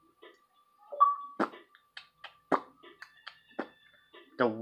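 Short electronic menu beeps sound from a television.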